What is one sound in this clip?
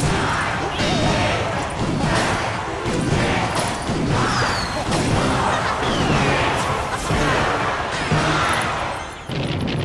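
Battle sound effects of clashes and blasts play from a video game.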